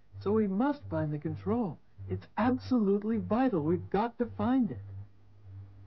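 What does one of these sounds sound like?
A young boy speaks excitedly, close by.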